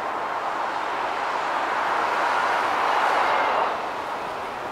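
A car swells louder as it passes close by, then fades.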